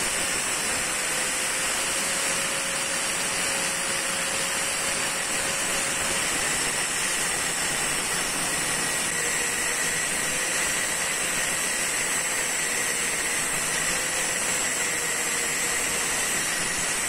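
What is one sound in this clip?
An angle grinder whines steadily as its disc cuts through metal with a harsh grinding hiss.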